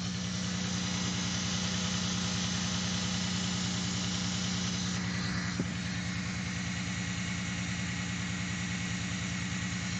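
A V6 car engine idles close by.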